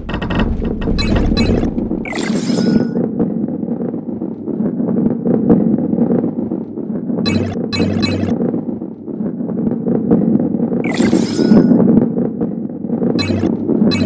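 Coins chime as they are collected.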